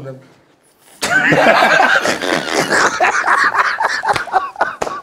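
Several men laugh loudly together.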